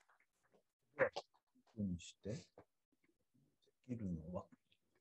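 A middle-aged man speaks calmly in short phrases through an online call.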